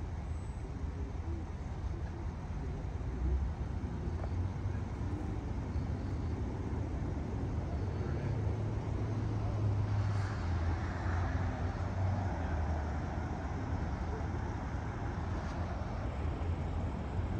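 A man speaks calmly outdoors, a few steps away.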